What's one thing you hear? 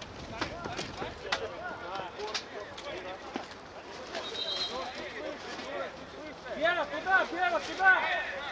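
Several men shout and call out to each other across an open outdoor field.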